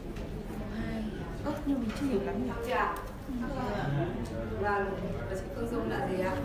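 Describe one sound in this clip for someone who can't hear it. A woman speaks with animation into a microphone, heard over loudspeakers in an echoing room.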